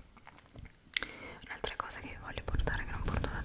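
A young woman whispers close to a microphone.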